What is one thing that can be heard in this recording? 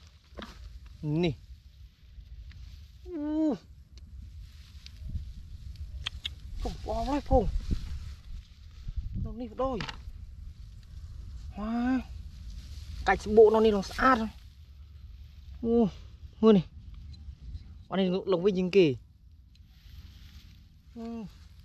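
Dry straw rustles underfoot and under hands.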